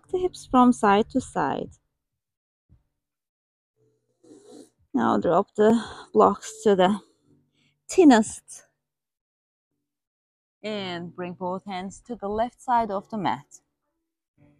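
A woman speaks calmly and clearly, giving instructions in short phrases.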